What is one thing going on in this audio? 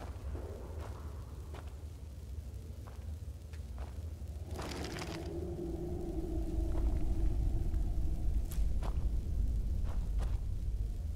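Magic spells crackle and hum steadily.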